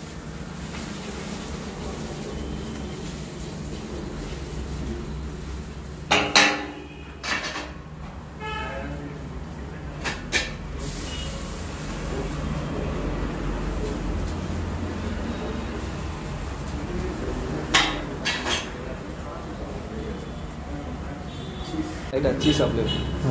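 Food sizzles on a hot griddle.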